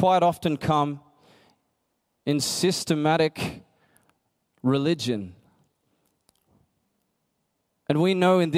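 A young man speaks with animation into a microphone, heard through loudspeakers in a large hall.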